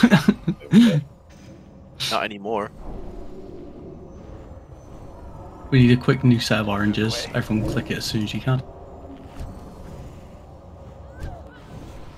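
Spells whoosh and clash in a game battle.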